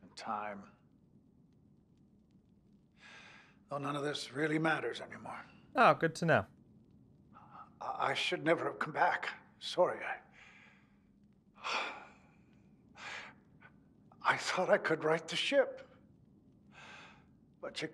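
A man speaks calmly and quietly into a microphone.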